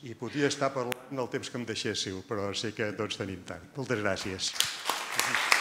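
An elderly man speaks through a microphone to a room.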